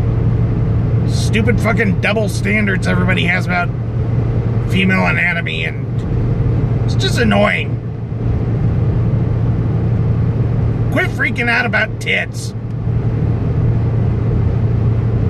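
Tyres roll along the road with a steady rumble.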